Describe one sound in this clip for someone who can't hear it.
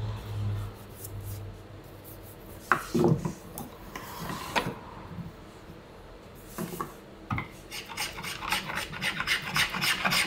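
A hand plane shaves wood in quick, scraping strokes.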